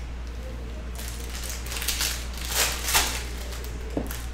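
A plastic wrapper crinkles and rustles as hands tear open a pack.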